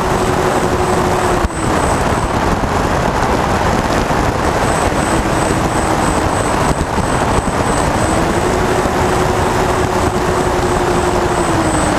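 Wind rushes hard against the plane.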